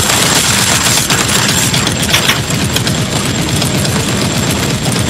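Explosions boom and crackle.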